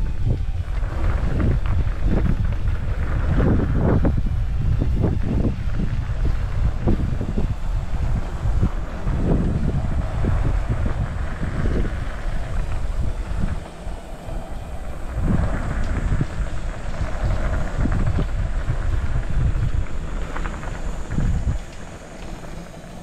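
Bicycle tyres rattle and crunch over a bumpy dirt trail.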